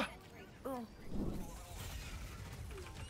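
An explosion booms with a rumble.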